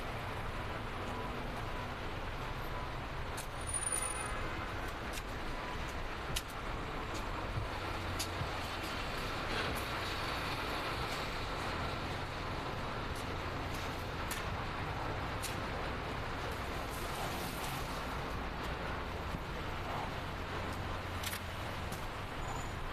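Car engines idle steadily in a line of traffic, echoing under a low concrete roof.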